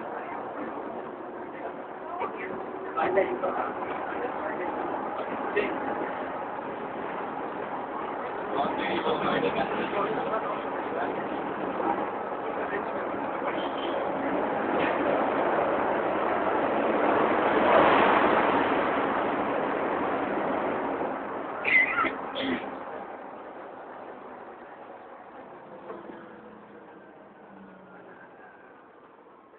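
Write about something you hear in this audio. A bus engine rumbles and the cabin rattles while driving.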